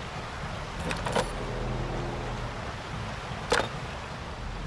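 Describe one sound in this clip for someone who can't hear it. A button clicks a few times.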